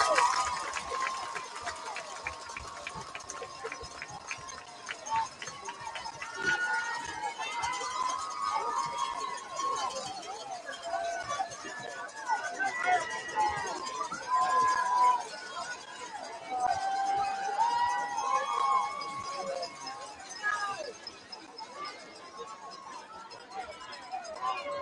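A large crowd cheers and shouts outdoors.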